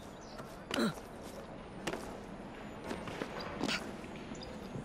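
Hands and boots thud against a brick wall during a climb.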